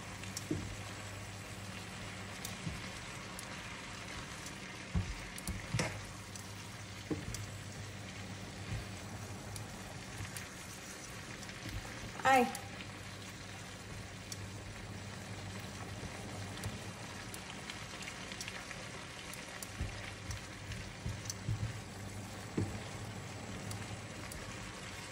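Food sizzles softly in a pan.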